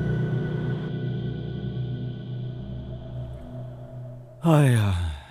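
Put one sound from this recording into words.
Music plays from a phone.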